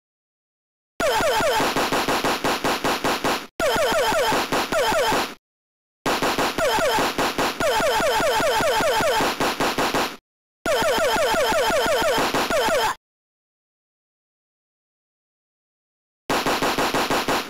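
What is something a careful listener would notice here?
Electronic game sound effects beep and zap rapidly in quick bursts.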